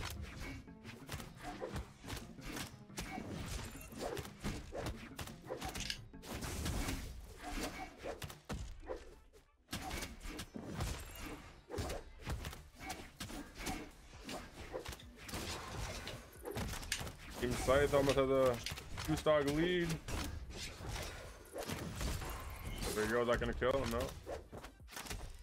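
Quick punches, slashes and whooshes from a fighting game clatter rapidly.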